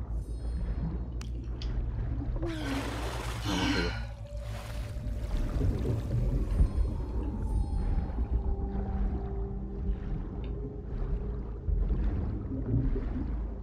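Water rushes and gurgles.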